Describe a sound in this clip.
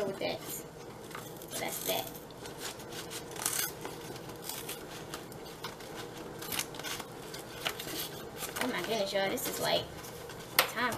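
Paper crinkles and rustles as it is folded and handled.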